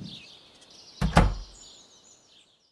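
A wooden door opens and shuts.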